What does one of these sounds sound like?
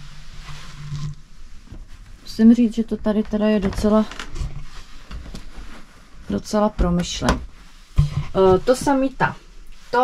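Fabric rustles as bedding is folded and shaken.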